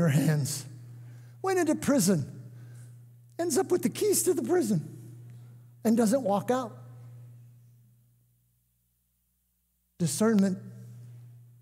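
An older man speaks calmly through a microphone, pausing between phrases.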